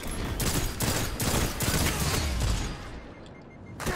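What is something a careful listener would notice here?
Video game gunshots fire in quick bursts.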